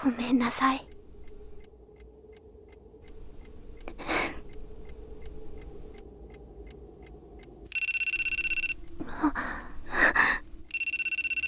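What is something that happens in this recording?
A young woman speaks softly and sadly.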